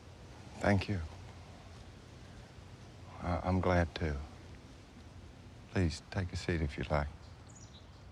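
A young man speaks calmly and quietly nearby.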